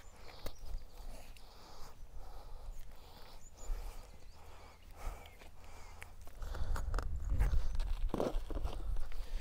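A man talks calmly, close to a clip-on microphone.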